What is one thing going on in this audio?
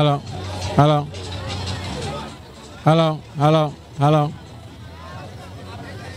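A crowd of people chatters and murmurs nearby.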